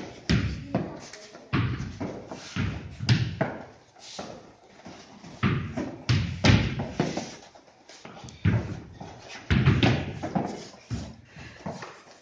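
Bare feet thud and shuffle on a padded mat.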